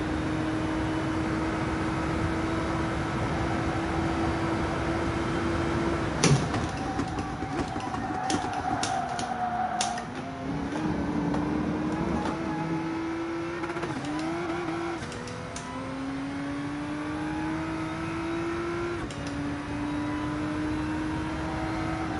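A racing car engine drones steadily, its pitch rising and dropping as it changes gear.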